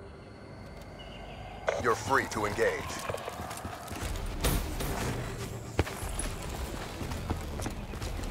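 Footsteps thud on a dirt path.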